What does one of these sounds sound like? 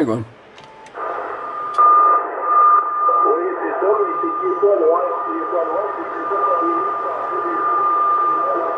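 A radio receiver hisses with static.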